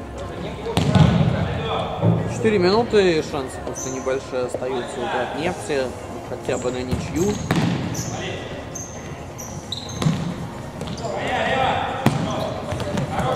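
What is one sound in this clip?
A ball is kicked hard with thuds echoing in a large hall.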